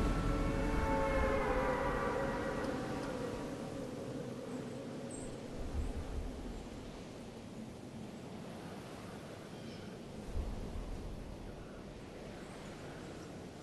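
Lightning crackles and fizzes.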